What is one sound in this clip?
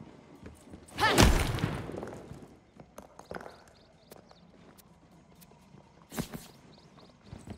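A gun fires with a loud blast that rings out and fades.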